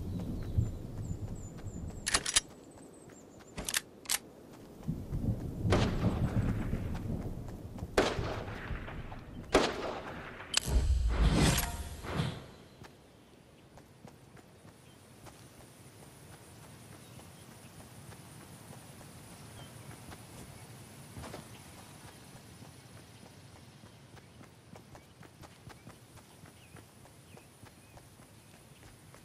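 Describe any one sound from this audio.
Footsteps run quickly across grass.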